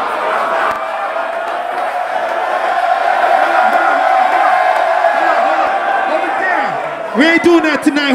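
A crowd cheers and shouts loudly in a large hall.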